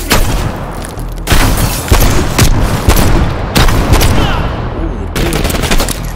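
Gunshots fire in loud, sharp bursts.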